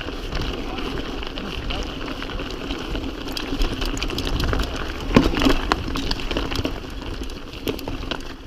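Bike tyres crunch and rattle over loose rocks.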